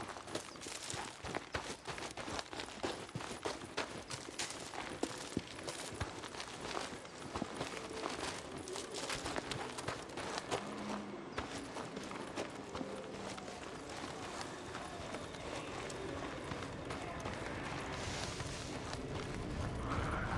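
Footsteps crunch through dry grass and brush.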